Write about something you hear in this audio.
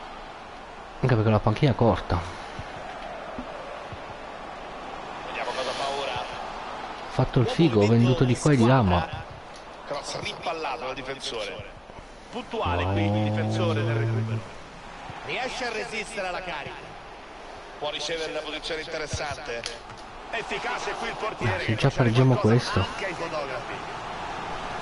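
A man talks with animation close to a microphone, in bursts.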